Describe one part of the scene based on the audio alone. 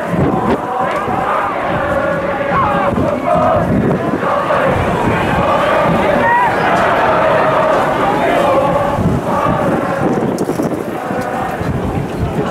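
A large crowd chants and sings loudly in an open stadium.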